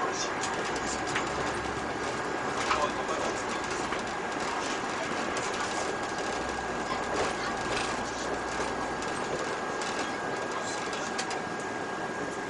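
Tyres of a bus roll on asphalt with a steady hiss.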